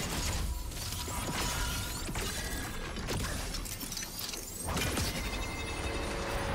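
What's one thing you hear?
Game spell effects whoosh and zap in quick bursts.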